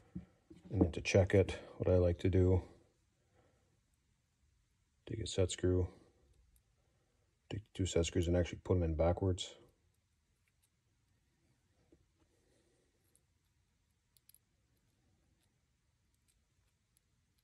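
Small metal parts click softly.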